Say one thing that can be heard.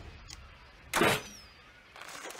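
A crossbow fires with a sharp twang.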